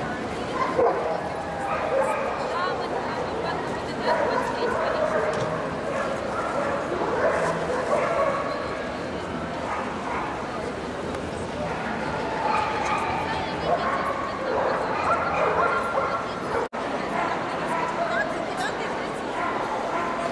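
A crowd of people chatters throughout a large echoing hall.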